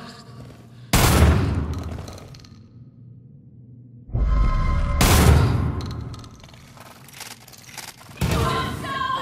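A gun fires loud shots that echo in an enclosed space.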